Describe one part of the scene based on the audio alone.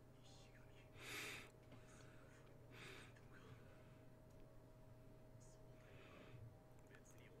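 A young man chuckles softly close to a microphone.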